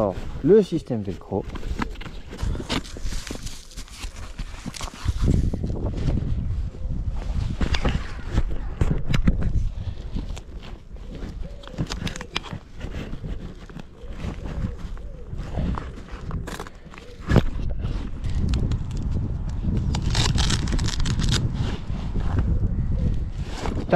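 Hook-and-loop straps rip apart and press together.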